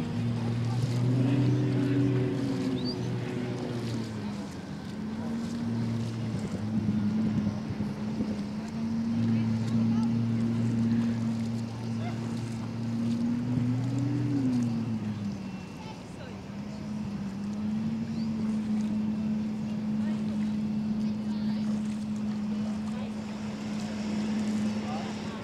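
A racing boat's engine roars steadily, rising and falling in pitch as it speeds across the water.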